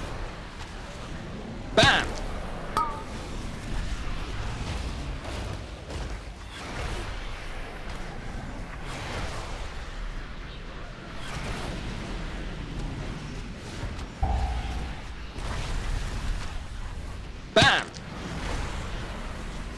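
Game spell effects whoosh and crackle throughout a fight.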